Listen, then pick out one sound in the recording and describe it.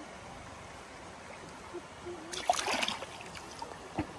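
A hand splashes in shallow water.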